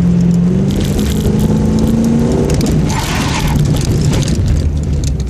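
Tyres scrub and squeal on pavement.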